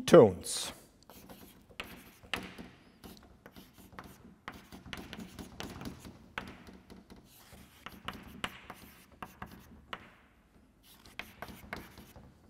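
Chalk taps and scrapes on a blackboard.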